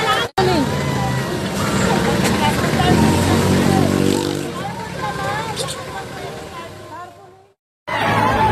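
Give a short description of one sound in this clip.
Several people talk excitedly close by through a phone microphone.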